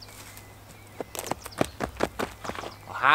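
Footsteps crunch on gravel, coming closer.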